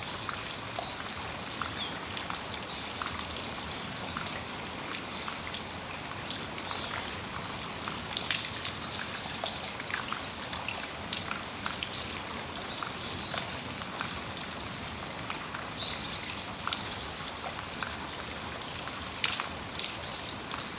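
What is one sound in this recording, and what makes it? Raindrops tap and patter on a metal awning.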